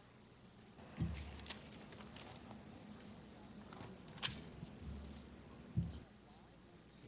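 A young woman speaks quietly through a microphone in a large room.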